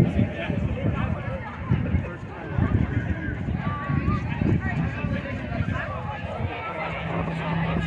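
A crowd of people chatters close by.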